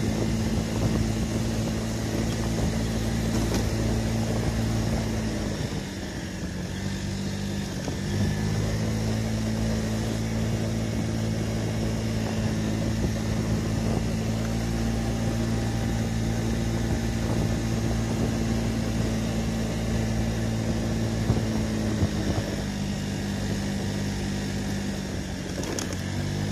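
A scooter engine hums steadily, dipping briefly as the rider eases off and rising again.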